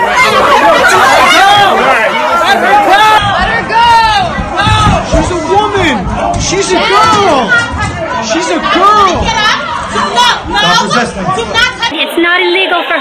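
A crowd of people shout over one another in a scuffle, heard up close.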